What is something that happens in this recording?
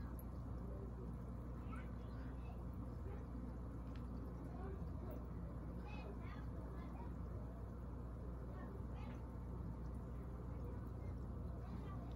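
Air bubbles rise and gurgle softly in water.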